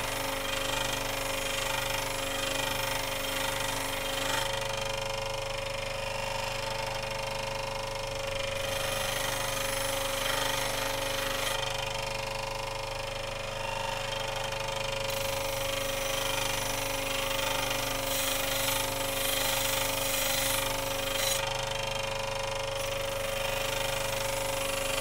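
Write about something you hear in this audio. A buffing wheel whirs and hisses against metal.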